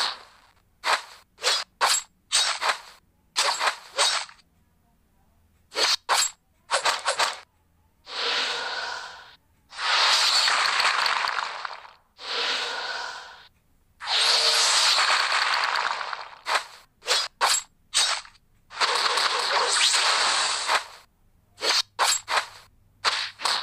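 Game battle sounds clash with sharp hits and bursts of effects.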